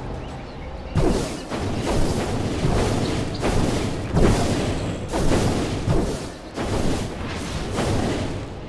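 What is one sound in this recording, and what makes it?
Magic spells whoosh and crackle in a fast video game fight.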